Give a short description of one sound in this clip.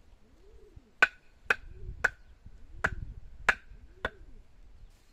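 A mallet knocks sharply on a stake several times.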